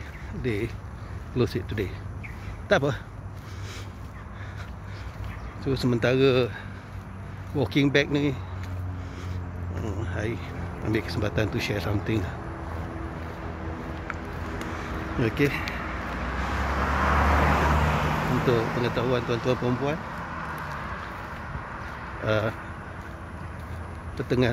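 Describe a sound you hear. A middle-aged man talks calmly, close to a phone's microphone.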